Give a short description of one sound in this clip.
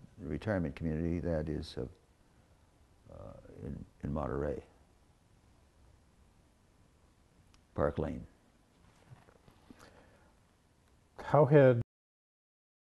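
An elderly man speaks calmly and slowly into a close microphone, with pauses.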